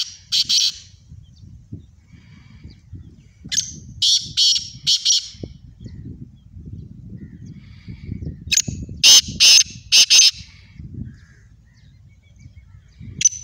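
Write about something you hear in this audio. A caged bird calls loudly nearby in sharp, repeated bursts.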